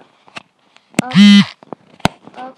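A phone's ringer chimes briefly as its volume is changed.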